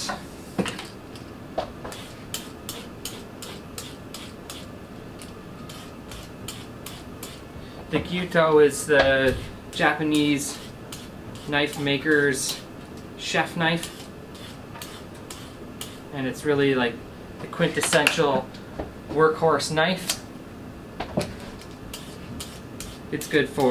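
A vegetable peeler scrapes quickly along a carrot.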